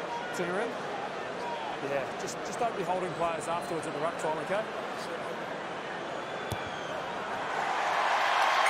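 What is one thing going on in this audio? A large stadium crowd murmurs in the background.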